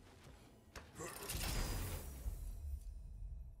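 A heavy chest lid creaks and thuds open.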